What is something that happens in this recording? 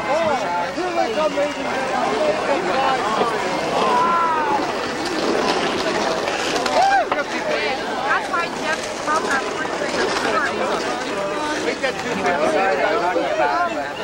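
Several men and women chat and laugh together outdoors.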